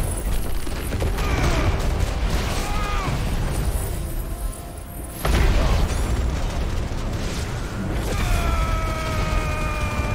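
Fiery explosions boom and crackle again and again.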